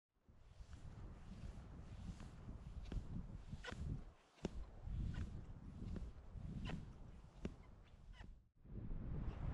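Skis swish and crunch rhythmically through deep powder snow close by.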